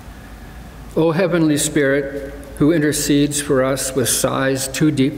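An elderly man reads aloud calmly through a microphone in a large echoing hall.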